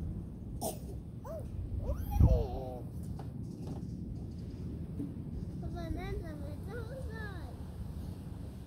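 A young child speaks and calls out nearby.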